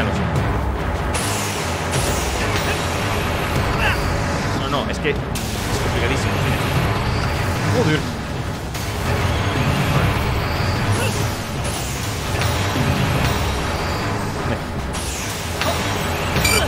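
Loud blasts and roaring effects from a game rumble and crash.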